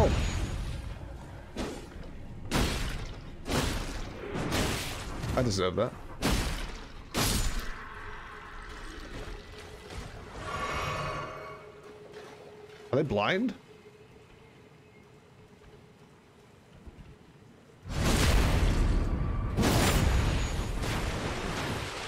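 Swords clash and strike in a game fight.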